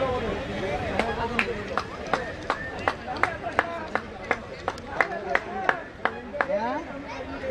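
A small group of players claps their hands.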